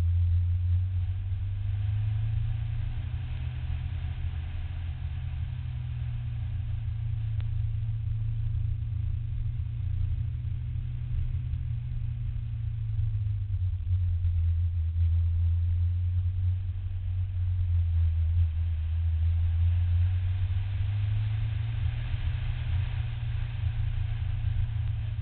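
Tyres hiss and roar on the pavement.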